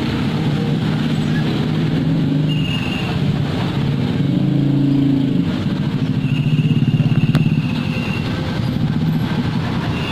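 A heavy truck engine rumbles loudly and slowly pulls away.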